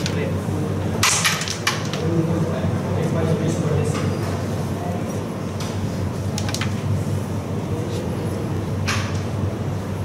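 A small disc taps and clicks on a wooden game board.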